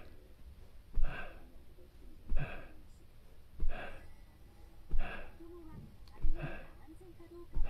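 A body thumps softly on a padded floor at regular intervals.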